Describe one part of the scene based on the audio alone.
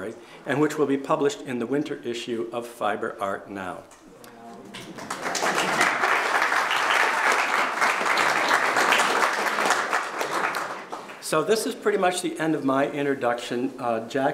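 An elderly man reads aloud calmly.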